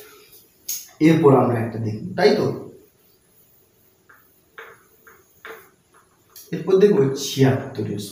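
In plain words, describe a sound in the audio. A young man speaks calmly and clearly, close to a microphone.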